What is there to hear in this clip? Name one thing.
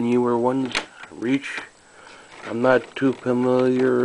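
Plastic disc cases click and knock as a hand handles them.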